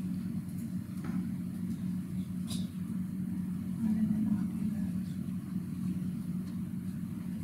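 Keys click softly on a laptop keyboard.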